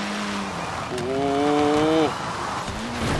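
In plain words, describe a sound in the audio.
Tyres screech briefly as a car slides through a bend.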